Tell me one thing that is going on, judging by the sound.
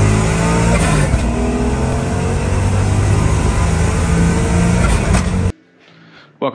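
An engine runs loudly and revs.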